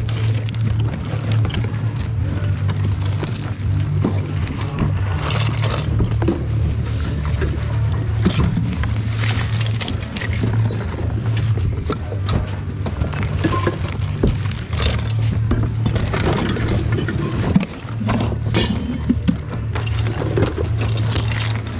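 Plastic bags and toys rustle and clatter as a hand rummages through them.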